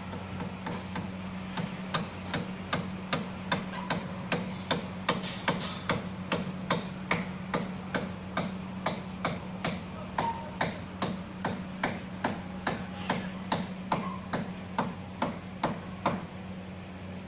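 Hammer blows ring out in a steady rhythm from a distant building site.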